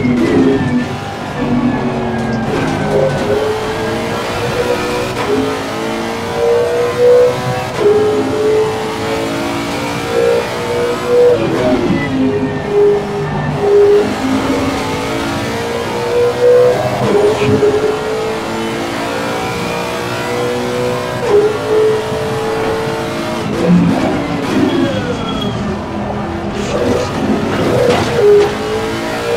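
A racing car engine roars, rising in pitch and dropping sharply with each gear change.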